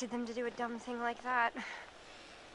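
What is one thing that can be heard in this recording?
A young woman speaks softly and anxiously up close.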